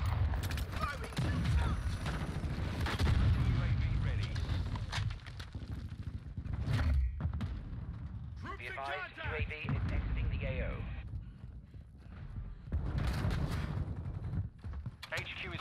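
A shotgun fires loud blasts again and again.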